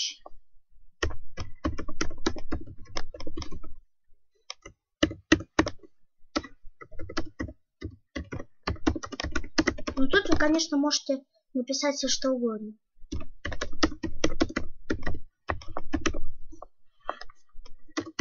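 Computer keys clatter as someone types quickly.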